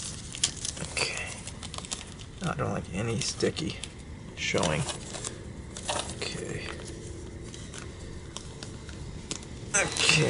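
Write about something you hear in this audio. Plastic sleeves crinkle and rustle as hands handle them.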